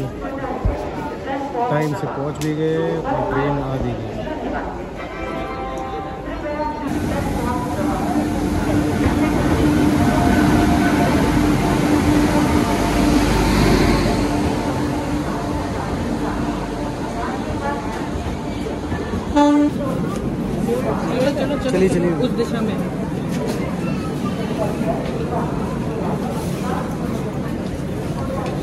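People chatter nearby on a busy platform.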